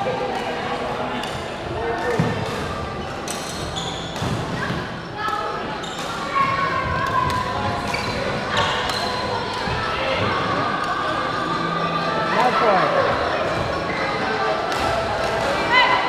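Players call out and chatter around a busy hall.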